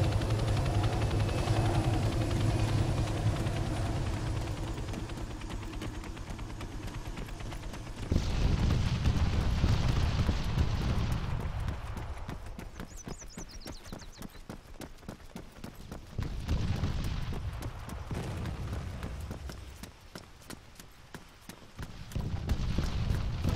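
Footsteps crunch steadily on the ground.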